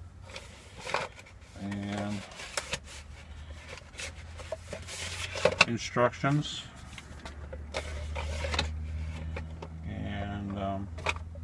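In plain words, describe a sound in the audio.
Paper rustles as packaging is handled.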